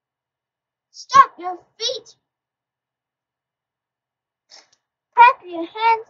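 A young girl speaks close to the microphone in a high, lively voice.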